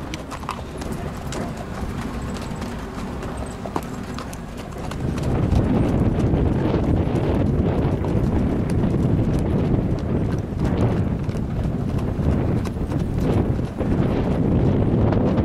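Hooves clop on a dirt track.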